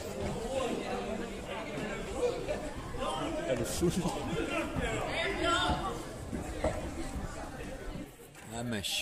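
Players shout and call out in a large echoing hall.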